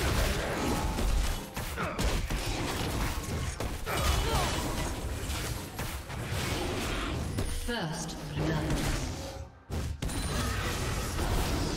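Game characters clash with sword slashes and spell blasts.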